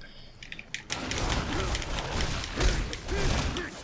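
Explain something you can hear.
A magical blast crackles and roars.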